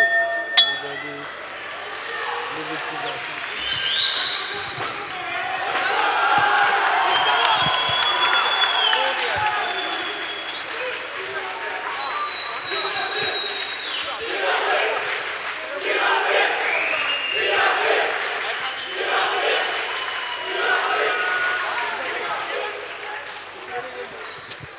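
A crowd cheers and whistles loudly in a large echoing hall.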